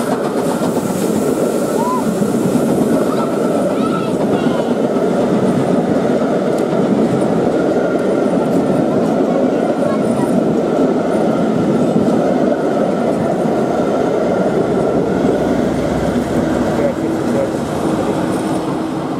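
Train carriages rumble and clatter steadily along the rails.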